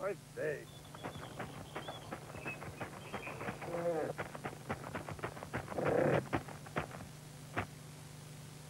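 Wooden cart wheels creak and knock as they roll.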